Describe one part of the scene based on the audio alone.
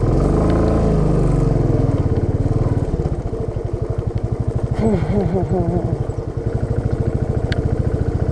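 A motorcycle engine thumps steadily at low speed.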